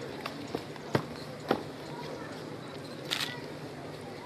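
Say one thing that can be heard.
Boots stamp hard on the ground.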